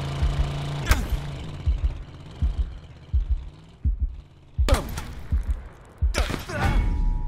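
Footsteps thud quickly on pavement.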